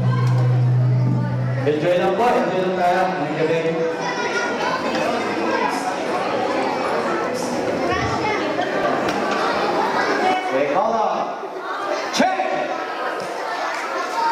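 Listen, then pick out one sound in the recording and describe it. A man sings into a microphone through loudspeakers.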